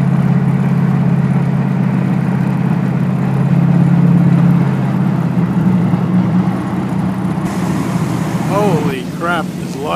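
Tyres hum on the road as a car drives along.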